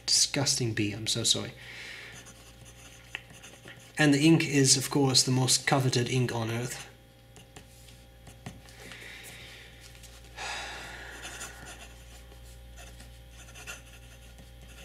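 A fountain pen scratches softly across paper.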